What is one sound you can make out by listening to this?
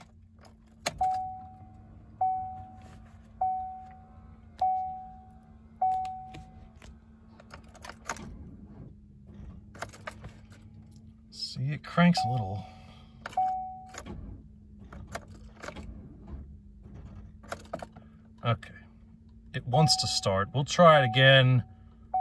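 A car's warning chime dings over and over, with pauses in between.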